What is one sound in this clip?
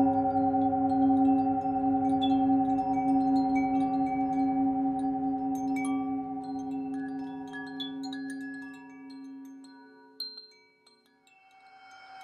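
A metal singing bowl hums with a steady, ringing tone that fades away.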